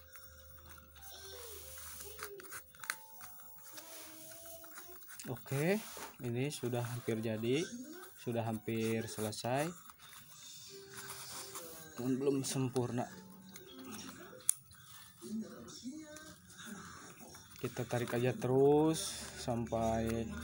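Stiff palm leaves rustle and crinkle as hands weave them.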